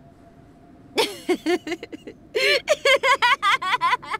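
A young man laughs loudly and mockingly.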